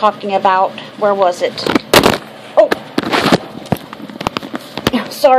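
A woman speaks animatedly close to a microphone.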